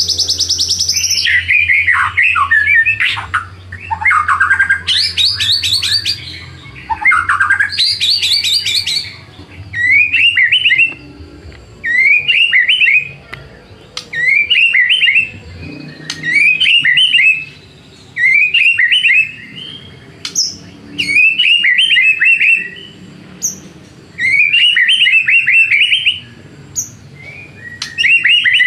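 A songbird sings loud, rich, varied phrases close by.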